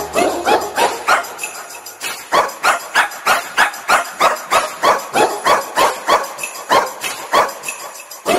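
A quick, bouncy electronic tune plays with sharp plucked notes.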